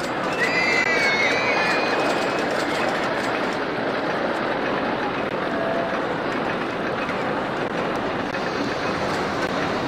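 A roller coaster train rattles along wooden track.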